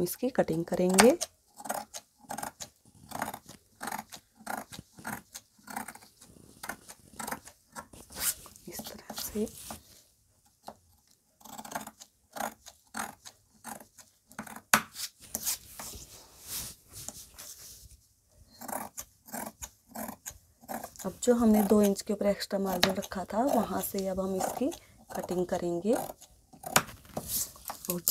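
Scissors snip and crunch through thick cloth in short, repeated cuts.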